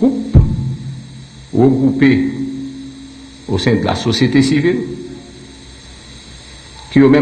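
A man speaks firmly into a microphone.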